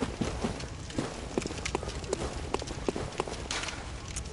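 Footsteps crunch steadily over dry leaves and stone.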